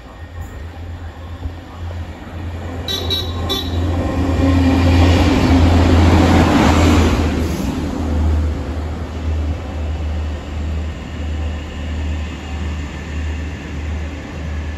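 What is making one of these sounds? A diesel train rumbles past close by, its engine roaring loudly before fading away.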